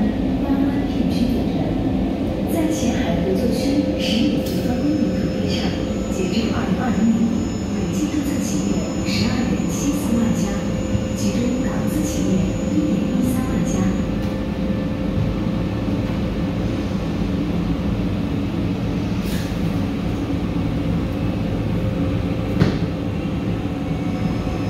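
A low, steady hum drones inside a slowly turning observation wheel cabin.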